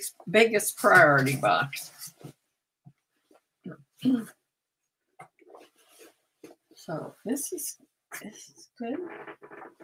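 Heavy fabric rustles as a garment is handled.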